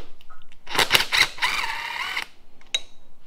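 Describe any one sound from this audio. A cordless impact driver whirs in short bursts.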